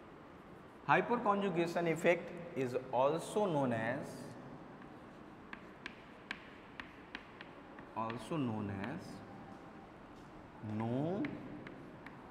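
A young man speaks calmly, lecturing.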